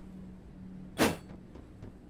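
A sword slashes through the air with a sharp whoosh.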